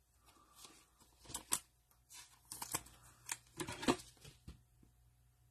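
Gloved hands handle and shuffle stiff plastic card sleeves with crisp clicks and rustles.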